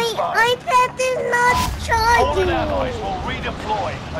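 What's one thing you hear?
Wind rushes past during a free fall.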